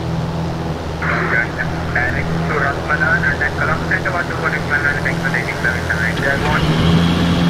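A young man speaks into a headset microphone.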